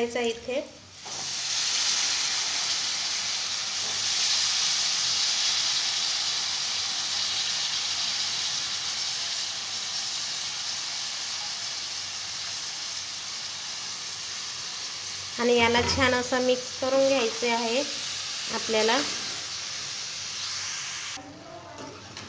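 Vegetables sizzle loudly in a hot frying pan.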